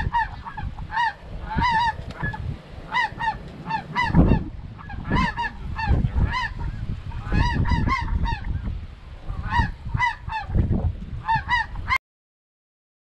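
Dry reeds rustle in the wind.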